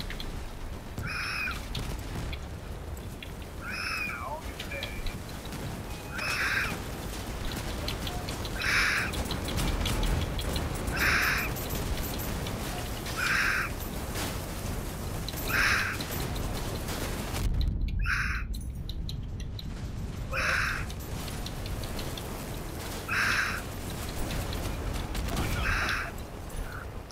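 Heavy guns fire in regular, booming bursts.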